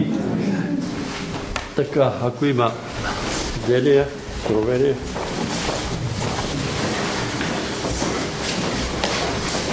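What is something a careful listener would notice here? A crowd of people murmurs and shuffles in a large room.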